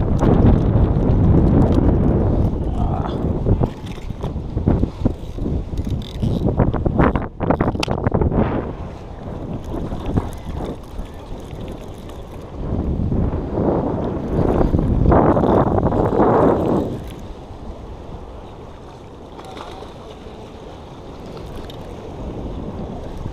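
Wind blows hard across a microphone outdoors.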